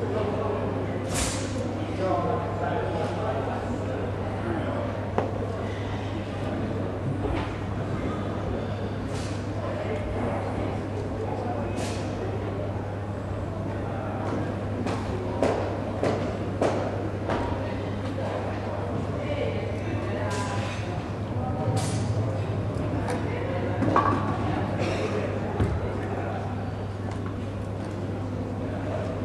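Feet shuffle and thump softly on a mat in a large echoing hall.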